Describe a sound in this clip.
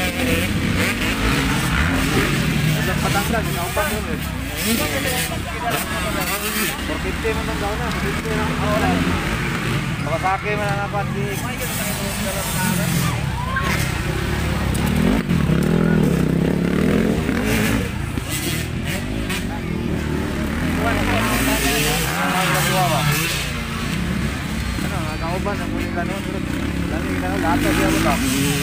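Dirt bike engines rev and whine loudly.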